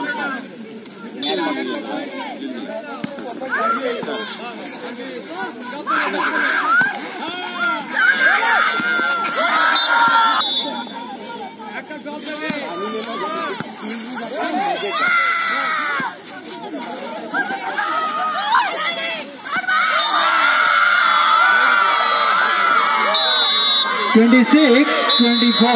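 Young women call out to each other during the game.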